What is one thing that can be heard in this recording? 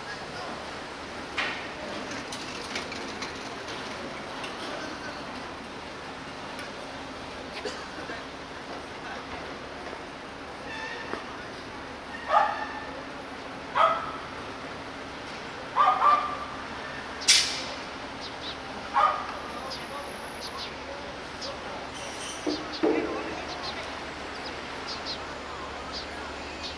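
Traffic hums steadily outdoors on a city street.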